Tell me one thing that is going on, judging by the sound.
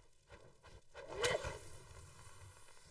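A fire flares up with a sudden whoosh.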